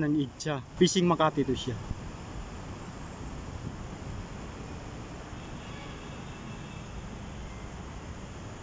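Distant city traffic hums steadily.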